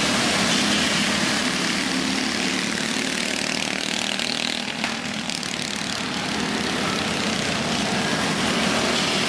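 Small engines drone and rev outdoors.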